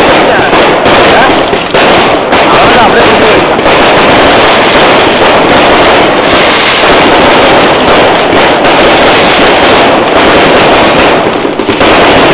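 Fireworks crackle and pop rapidly and loudly, very close by.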